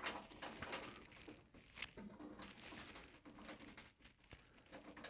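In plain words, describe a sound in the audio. A screwdriver turns a screw with small metallic scrapes and clicks.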